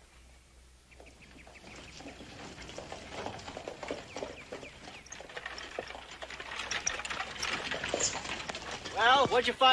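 Horse hooves clop on a dirt road, drawing closer.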